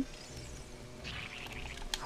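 A sword swishes through the air with a short slashing sound.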